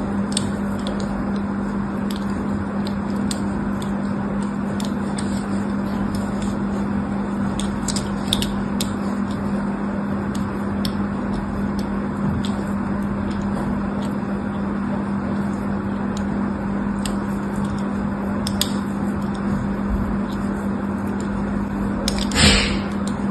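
A needle scrapes and scratches into a bar of soap with small crisp clicks.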